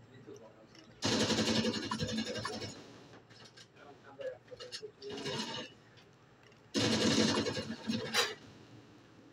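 Rapid gunfire from a video game plays through a television speaker in bursts.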